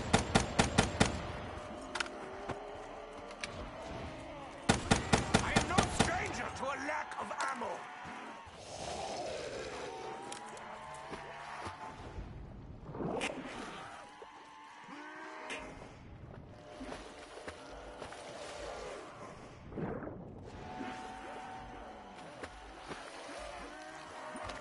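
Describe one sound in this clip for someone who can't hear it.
Zombies groan and snarl nearby.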